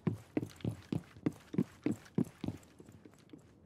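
Footsteps thud quickly up wooden stairs.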